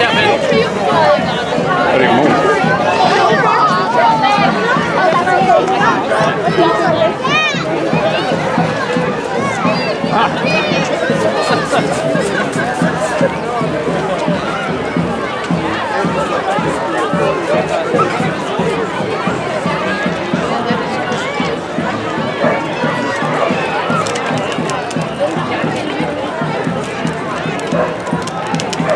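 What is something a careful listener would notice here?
A large crowd chatters and calls out all around, outdoors.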